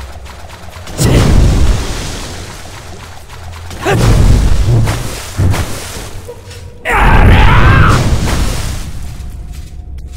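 A heavy sword swings with loud whooshing slashes.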